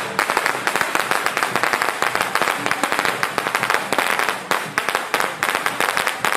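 A long string of firecrackers bangs and crackles rapidly outdoors.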